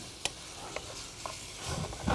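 A spoon scrapes in a frying pan.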